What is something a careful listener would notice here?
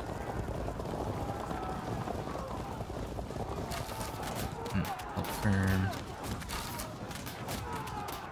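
Weapons clash and clatter in a large battle.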